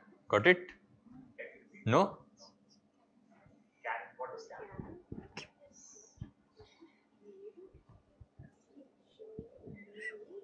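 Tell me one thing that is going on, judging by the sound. A young man answers from nearby without a microphone.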